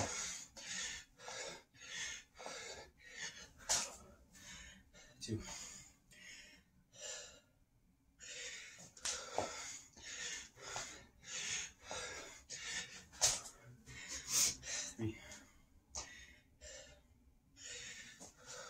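A man breathes hard and fast.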